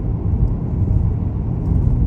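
An oncoming car passes by.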